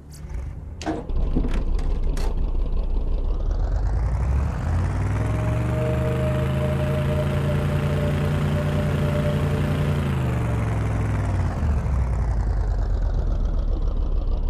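A vehicle engine rumbles and revs loudly as it drives.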